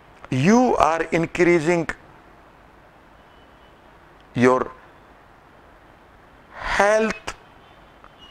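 A man speaks calmly and clearly, close to a microphone, with pauses between phrases.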